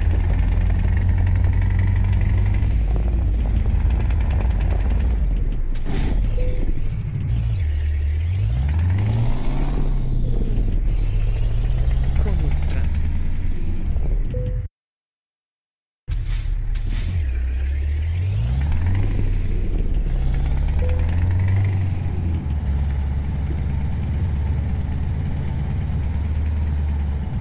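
A truck's diesel engine rumbles steadily and revs up and down as it drives.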